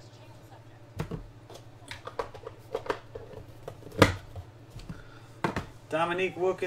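A cardboard box lid slides and taps as cards are handled close by.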